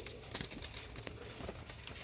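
A pigeon flaps its wings.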